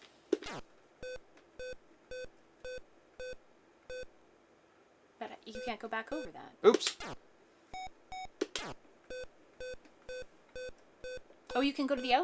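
Short electronic game beeps sound in a steady rhythm.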